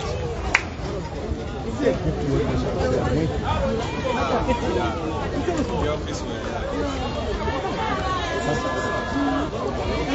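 A crowd of men talk and call out together outdoors nearby.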